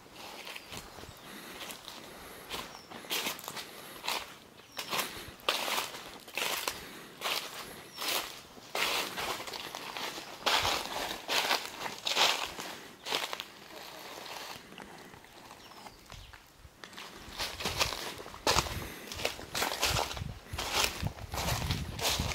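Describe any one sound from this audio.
Footsteps crunch on dry leaves at a steady walking pace.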